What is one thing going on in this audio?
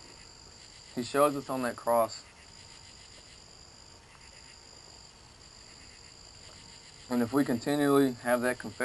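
A young man reads aloud nearby, in short bursts.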